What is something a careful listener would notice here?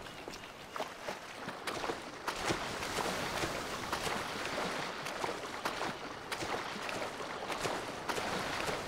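Water splashes and laps as a swimmer paddles through it.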